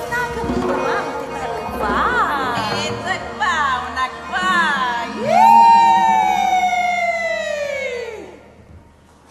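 A woman sings with wide, sliding notes through a microphone.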